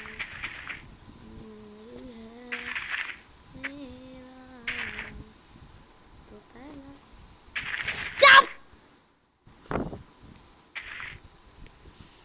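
A young boy talks close to a phone microphone.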